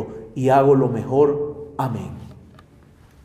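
A man speaks with emphasis into a microphone in a small echoing room.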